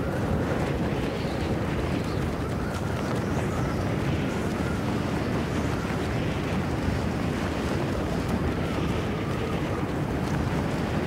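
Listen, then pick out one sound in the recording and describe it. Wind rushes past steadily during a long freefall glide.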